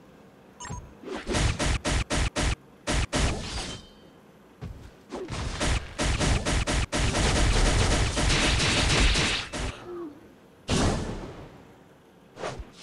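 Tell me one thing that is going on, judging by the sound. Video game battle effects crash and blast in rapid bursts.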